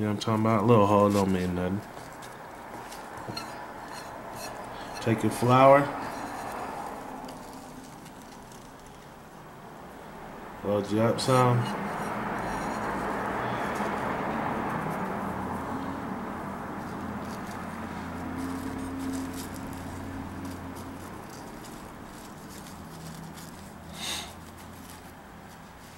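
Dry leaves crackle and rustle between fingers.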